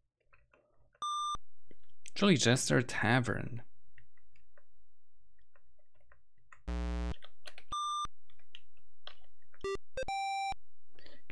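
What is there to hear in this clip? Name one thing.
Short electronic beeps from an old computer game sound in bursts.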